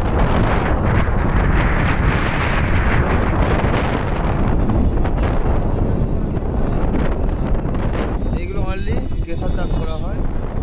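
Wind roars steadily against the microphone outdoors.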